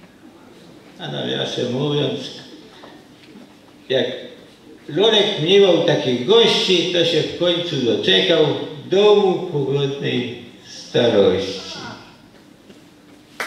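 An elderly man speaks with animation into a microphone in a large echoing hall.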